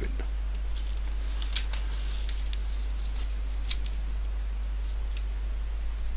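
Paper rustles as a sheet is turned over.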